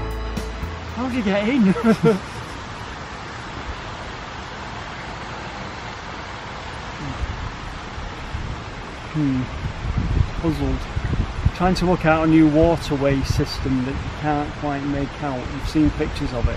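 A middle-aged man talks calmly close by, outdoors.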